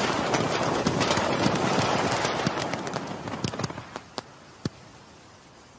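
Fireworks crackle and pop, then fade away.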